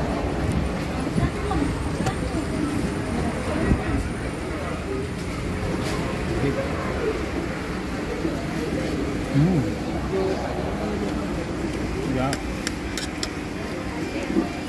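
A spoon and fork scrape and clink against a plate.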